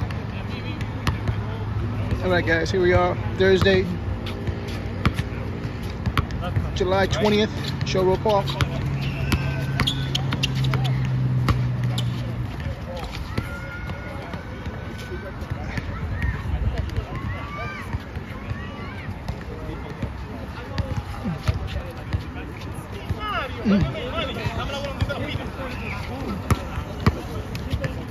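A basketball bounces on an outdoor court.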